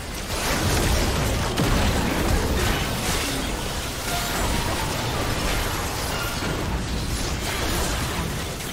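Magic spells crackle and boom in a fast, busy battle.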